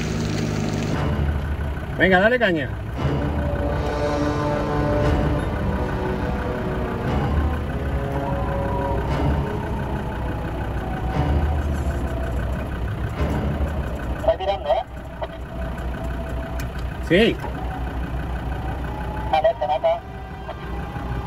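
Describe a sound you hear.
An off-road vehicle's engine revs as it churns through thick mud.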